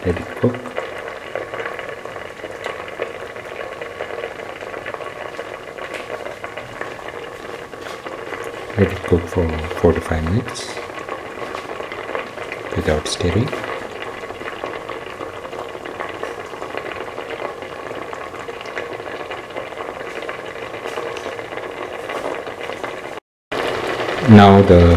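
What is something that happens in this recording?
A pot of liquid bubbles and simmers steadily.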